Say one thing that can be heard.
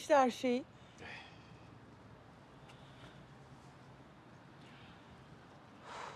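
A woman speaks softly and anxiously up close.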